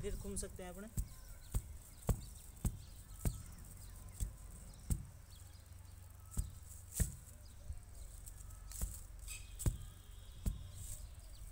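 A brick thuds repeatedly against packed soil.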